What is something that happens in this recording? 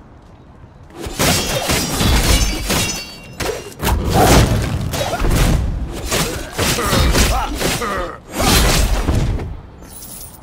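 Blades swing and strike with sharp clashing blows in a fight.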